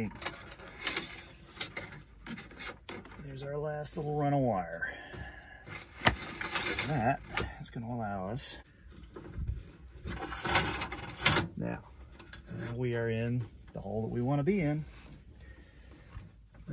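Wire rustles and scrapes against plastic trim close by.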